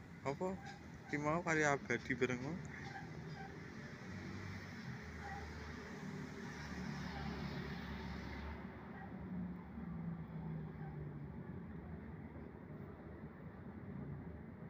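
A van's engine idles nearby.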